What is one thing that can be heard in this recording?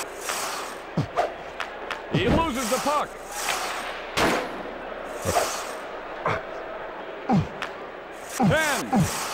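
Sticks sharply clack against a puck in a video game.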